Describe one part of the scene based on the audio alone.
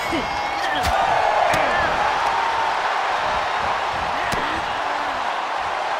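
Blows land with thuds as wrestlers strike each other.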